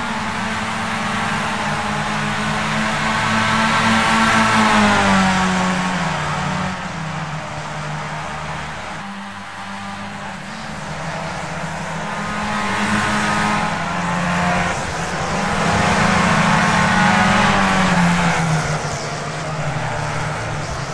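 Racing car engines whine loudly, rising and falling in pitch as gears shift.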